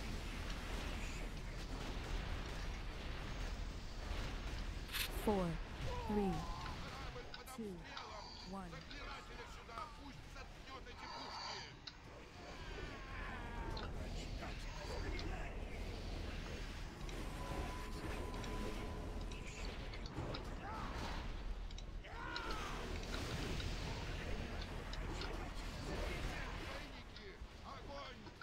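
Battle sounds of spells and weapons clash and whoosh.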